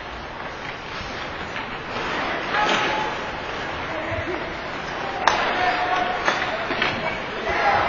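Sticks click against a puck.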